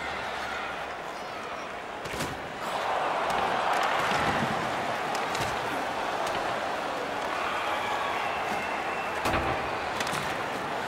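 A large crowd murmurs and cheers in an echoing arena, growing louder.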